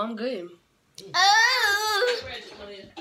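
A girl laughs and squeals loudly.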